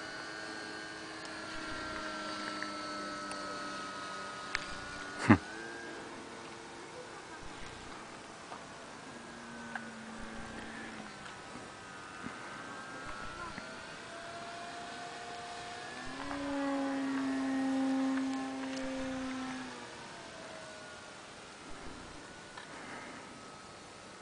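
A small model airplane engine drones overhead, its pitch rising and falling as it turns.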